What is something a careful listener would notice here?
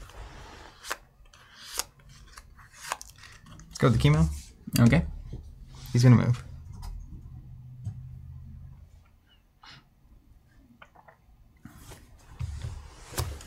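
Game cards tap and slide on a table.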